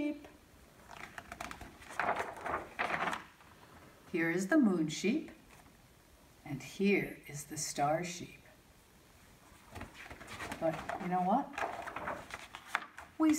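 Stiff book pages rustle and flap as they are turned.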